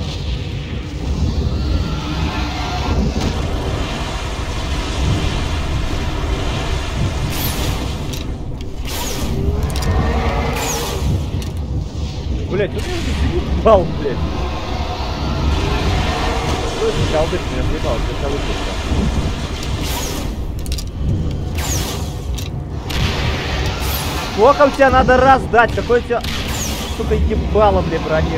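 Fires crackle and roar steadily.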